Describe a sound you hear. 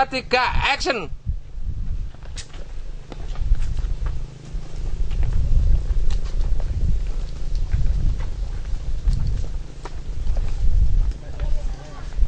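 Footsteps tap on a paved path.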